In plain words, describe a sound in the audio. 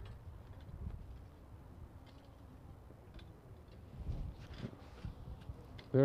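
Shovels scrape and dig into soil.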